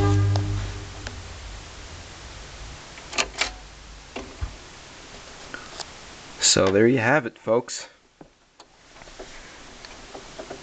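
A spinning vinyl record crackles and pops softly.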